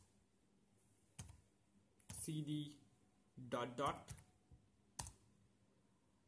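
Keyboard keys click sharply now and then.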